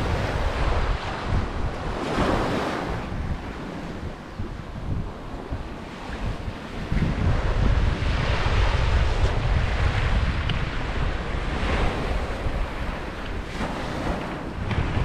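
Small waves wash gently onto a sandy shore.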